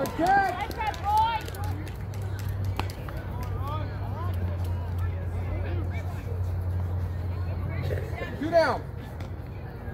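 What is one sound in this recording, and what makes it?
Young women shout and cheer outdoors across an open field.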